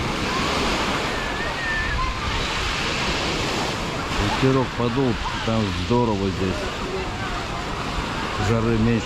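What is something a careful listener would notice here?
A crowd of bathers chatters and calls out in the distance outdoors.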